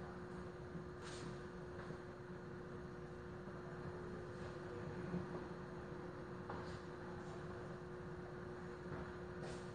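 Metal parts click and clink now and then as they are handled.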